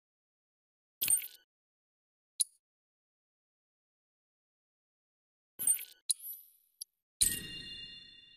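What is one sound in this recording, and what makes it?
Short electronic menu blips sound.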